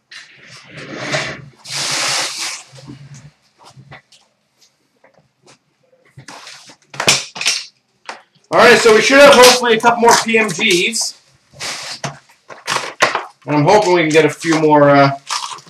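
Cardboard and wrappers rustle and tear as cards are unpacked.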